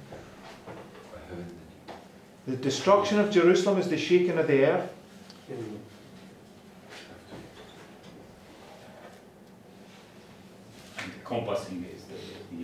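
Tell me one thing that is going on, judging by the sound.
A middle-aged man speaks calmly, close by in a room.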